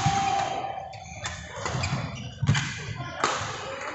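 A badminton racket strikes a shuttlecock in an indoor hall.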